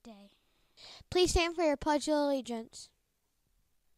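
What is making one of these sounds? Another young girl speaks into a microphone, close by.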